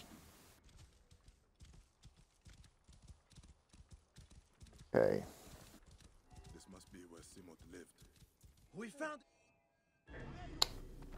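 Horse hooves thud quickly on dirt at a gallop.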